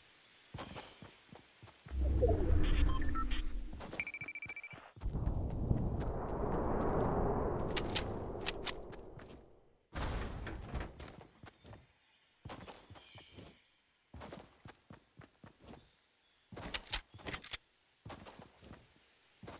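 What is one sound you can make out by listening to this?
Quick footsteps patter along the ground.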